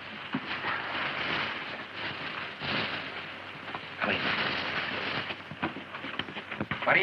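Men scuffle and grapple noisily.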